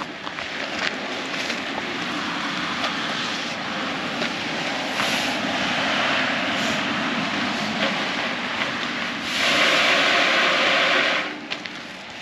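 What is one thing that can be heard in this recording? Fir branches rustle and scrape as a tree is pulled through a metal tube.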